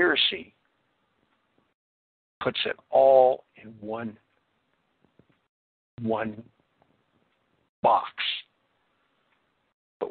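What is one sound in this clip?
An elderly man speaks calmly in short phrases with pauses.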